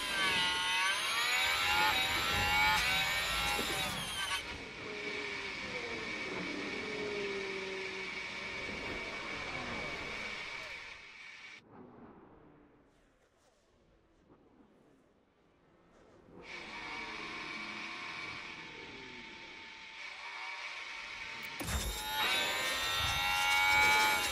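A racing car engine screams at high revs, rising in pitch.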